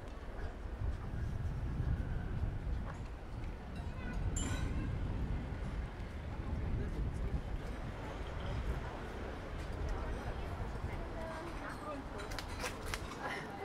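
People chatter nearby.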